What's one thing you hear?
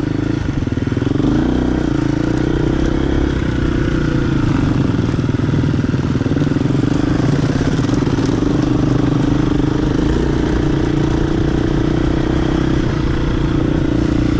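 Other dirt bike engines buzz nearby.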